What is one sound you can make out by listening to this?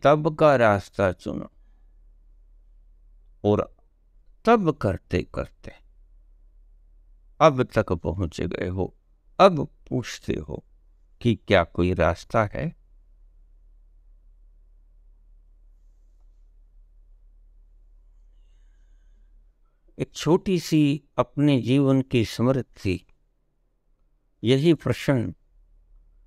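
An elderly man speaks calmly and close to a microphone, in short bursts with pauses.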